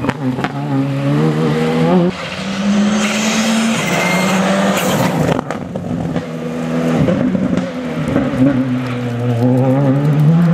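Gravel sprays and crunches under a rally car's tyres.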